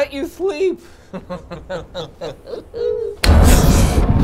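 A young man talks playfully in a put-on voice.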